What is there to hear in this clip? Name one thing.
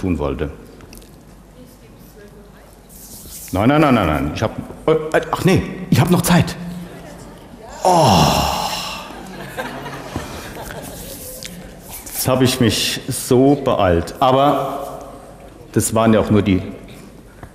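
An older woman lectures with animation through a microphone.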